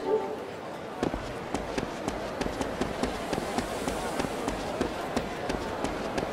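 Footsteps run quickly and steadily.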